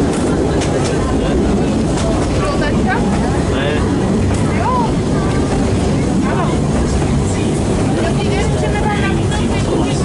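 A narrow-gauge steam train rumbles along the track, heard from inside a carriage.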